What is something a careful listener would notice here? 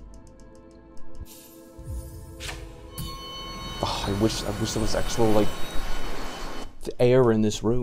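Game music and sound effects ring out, then stop.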